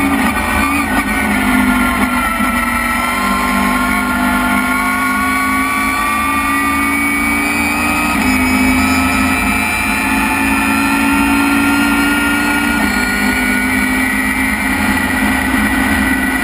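A racing car engine roars loudly from inside the cabin, its pitch rising as it speeds up and dropping at each gear change.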